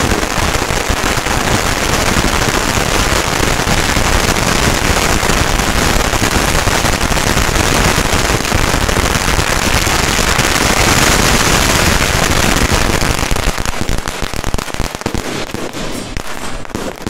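A long string of firecrackers bangs in rapid, crackling bursts outdoors.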